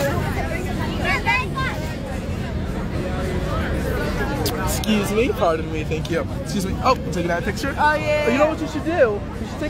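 Women shout and scream excitedly nearby.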